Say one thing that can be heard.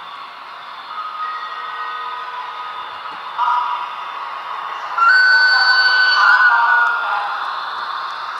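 Train wheels squeal in long, high tones.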